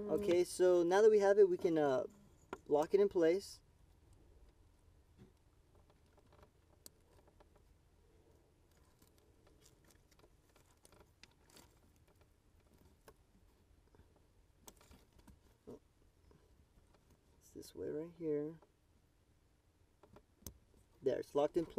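Small plastic parts click and rattle faintly.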